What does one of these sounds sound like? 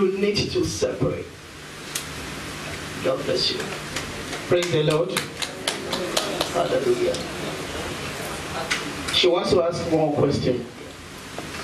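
A woman speaks into a microphone, heard through a loudspeaker in an echoing room.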